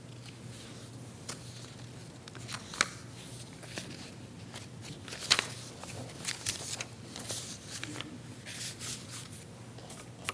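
Paper pages rustle and turn.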